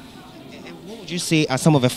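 A man asks questions into a microphone.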